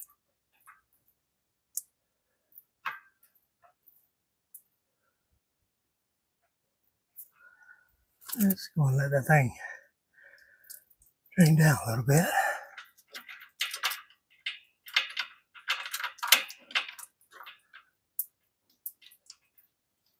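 Metal parts click and clink.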